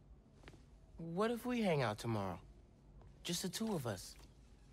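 A young man speaks softly and gently, close by.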